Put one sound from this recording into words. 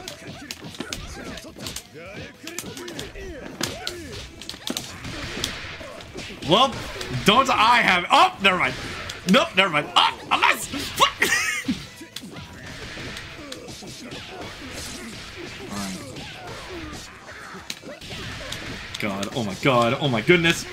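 Punches and kicks land with sharp smacks again and again.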